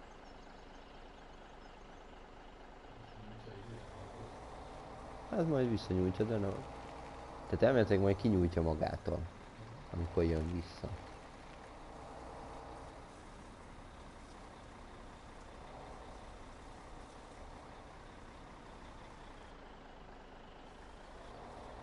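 A tractor engine hums steadily as the tractor drives.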